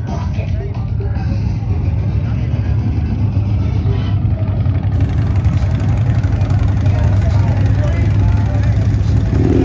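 Motorcycle engines idle with a deep, steady rumble.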